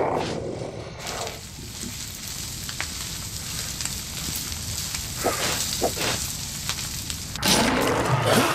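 Flames hiss and crackle steadily.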